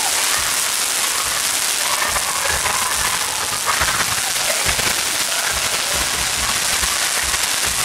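A group of people claps.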